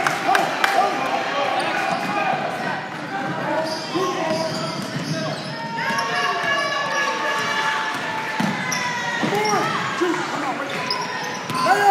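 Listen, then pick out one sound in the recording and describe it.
Sneakers squeak sharply on a hard court in a large echoing gym.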